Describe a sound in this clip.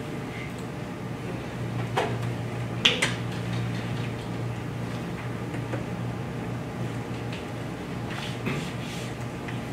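A projector hums steadily.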